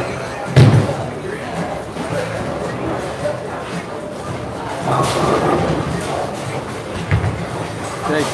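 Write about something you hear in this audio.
Bowling pins crash and clatter in a large echoing hall.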